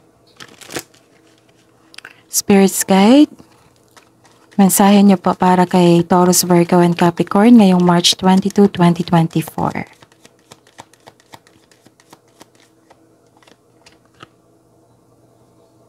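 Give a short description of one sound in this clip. Playing cards riffle and slide softly as a deck is shuffled by hand.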